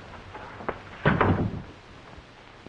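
A door opens with a clunk.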